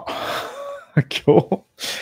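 A man laughs close to a microphone.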